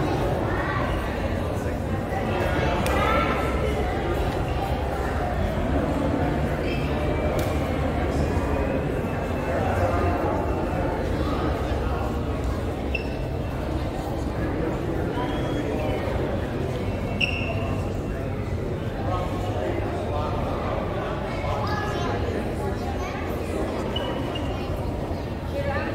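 A crowd of men and women murmur and chatter in a large echoing stone hall.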